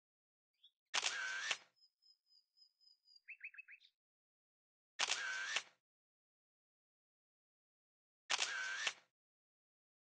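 A soft whoosh sounds as a card slides in, several times.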